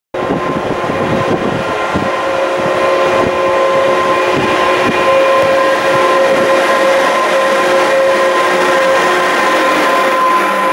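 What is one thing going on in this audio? An electric train approaches and passes close by with a rising rumble.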